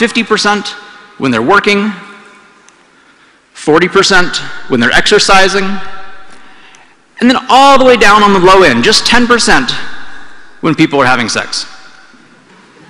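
A man speaks calmly to an audience through a microphone.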